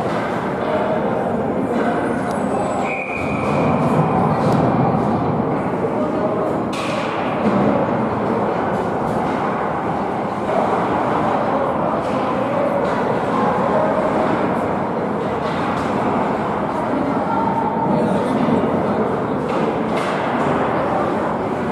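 Hockey sticks clack against a puck and the ice.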